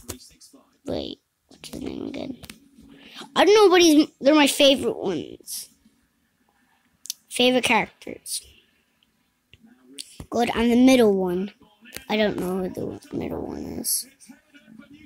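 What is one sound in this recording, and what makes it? A young boy talks excitedly into a nearby microphone.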